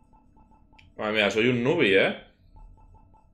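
A young man speaks briefly into a microphone with animation.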